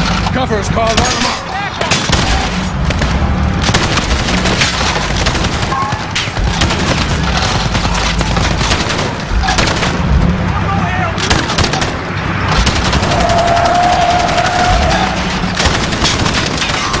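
A rifle fires rapid bursts of shots from close by.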